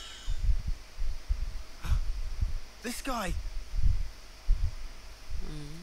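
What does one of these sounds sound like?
A man cries out in pain.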